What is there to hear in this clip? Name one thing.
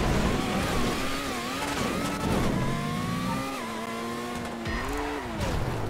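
An open-wheel racing car engine screams at high revs, rising and falling in pitch.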